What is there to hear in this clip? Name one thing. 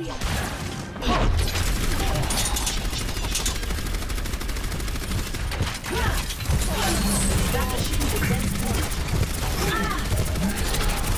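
A weapon fires rapid, booming shots.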